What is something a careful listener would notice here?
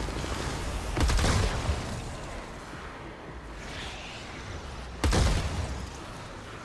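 Loud blasts boom.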